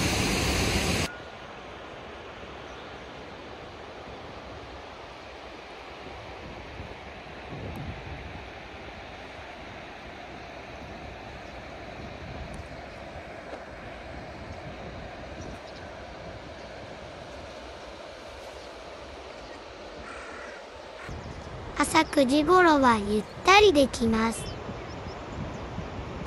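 A wide, shallow river flows gently nearby.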